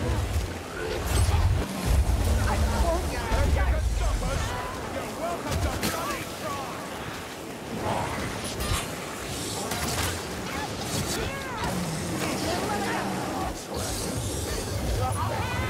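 Swords clang and slash against enemies.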